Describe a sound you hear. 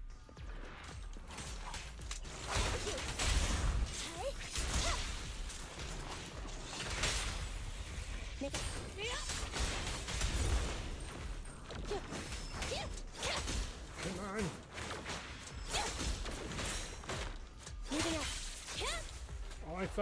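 Blades whoosh and clash in fast game combat.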